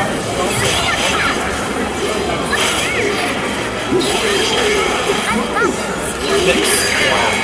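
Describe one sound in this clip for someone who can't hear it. Magic blasts whoosh and crackle.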